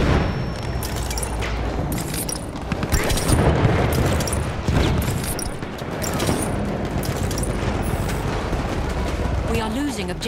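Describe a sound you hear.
Gunshots crack sharply in a nearby battle.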